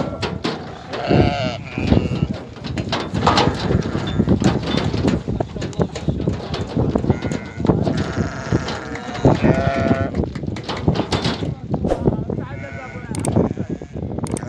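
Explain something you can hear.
Sheep bleat loudly nearby.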